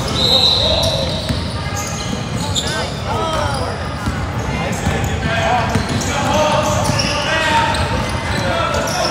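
Children shout and call out across a large echoing gym.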